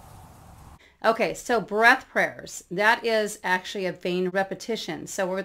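A middle-aged woman speaks calmly and clearly into a microphone, close by.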